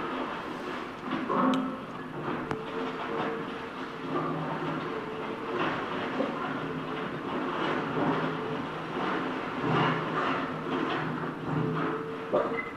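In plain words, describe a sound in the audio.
An excavator engine rumbles and whines steadily.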